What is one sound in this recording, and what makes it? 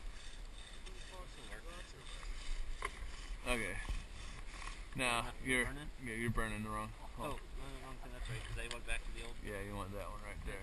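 A man talks nearby, outdoors.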